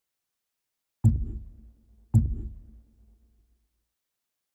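Deep whooshing thuds sound as menus change.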